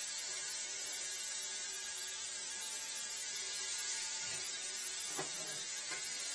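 A wet vacuum cleaner hums steadily nearby.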